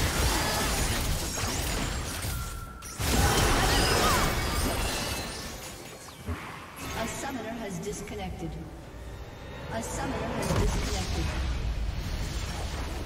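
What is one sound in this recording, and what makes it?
Spells blast and crackle in a fast, busy battle.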